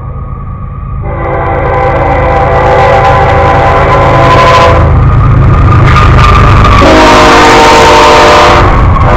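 A freight train's engines rumble and roar as it passes close by.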